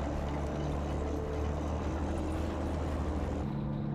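Large tyres crunch over packed snow.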